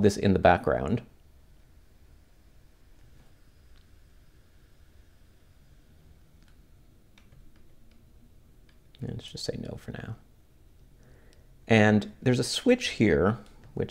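Small buttons click softly under fingers.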